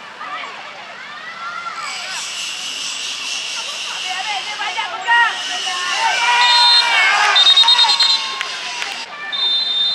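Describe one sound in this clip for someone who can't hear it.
Young players shout to each other across an open pitch.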